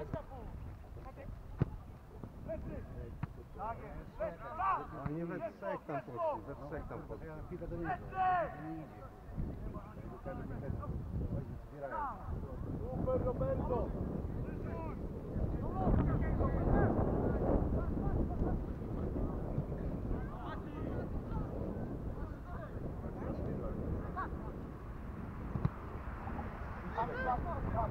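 Distant players shout to each other across an open field.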